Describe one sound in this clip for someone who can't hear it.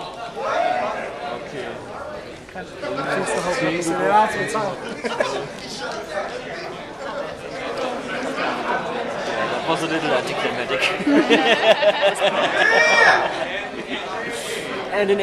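A crowd of young men and women cheers and shouts excitedly in a large echoing hall.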